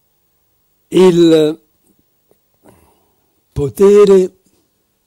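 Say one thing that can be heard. An elderly man speaks slowly through a microphone in short phrases.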